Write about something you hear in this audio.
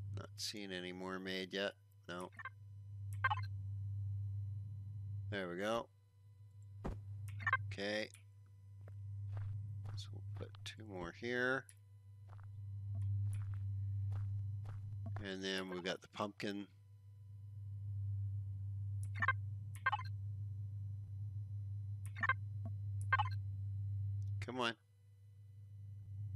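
Short electronic clicks sound as game menus open and close.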